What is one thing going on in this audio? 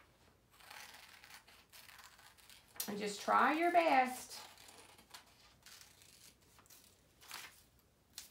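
Paper rustles and crinkles in a person's hands.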